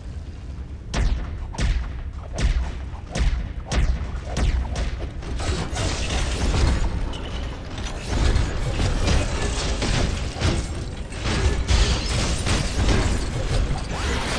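Punches and blasts thud and crackle in a fast brawl.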